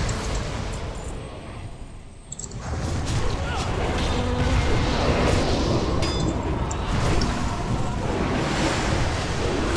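Magic spells crackle and burst in a busy fantasy battle.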